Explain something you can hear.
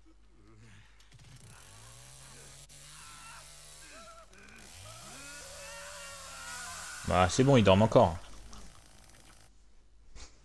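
A chainsaw engine revs up and roars.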